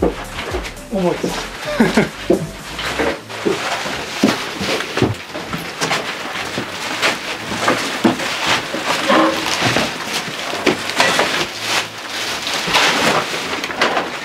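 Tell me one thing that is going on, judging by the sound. Objects knock and clatter as they are moved.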